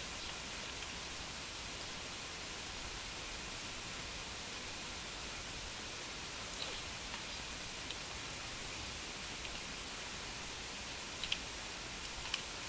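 Grass rustles as a soldier crawls through it.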